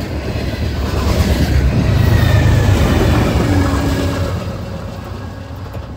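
A diesel locomotive roars past.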